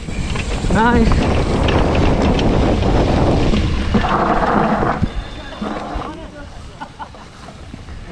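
A bicycle rattles over a bumpy dirt trail.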